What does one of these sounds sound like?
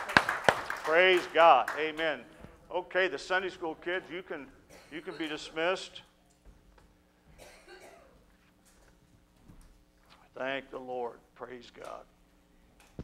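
A man speaks calmly into a microphone, heard through loudspeakers in a hall.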